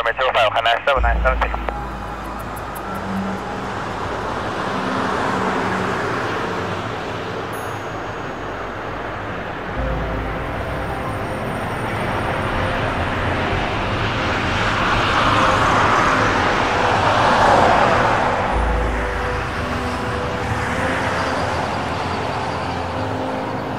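A jet airliner's engines roar steadily, swelling and fading.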